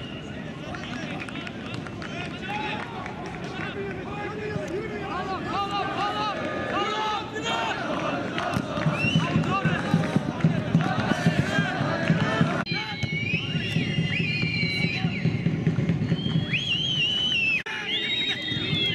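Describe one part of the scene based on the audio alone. A large crowd of men chants and shouts outdoors.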